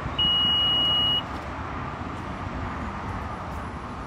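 A car's power tailgate hums as it lifts open.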